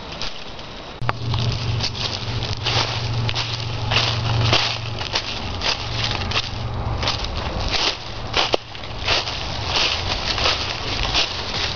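Footsteps crunch through dry fallen leaves.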